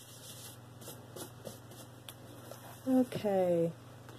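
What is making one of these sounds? A fabric pad rustles as it is laid down.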